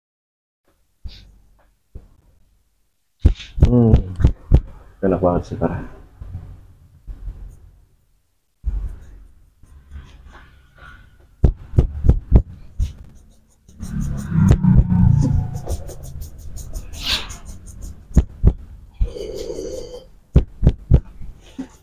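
Fingers rub and scratch through hair close to a microphone.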